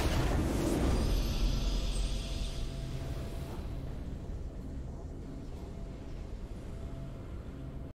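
A short victory fanfare plays.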